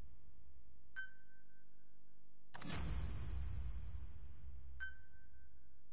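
A soft electronic chime sounds a few times.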